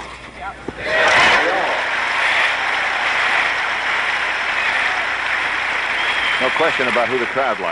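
A large outdoor crowd applauds loudly.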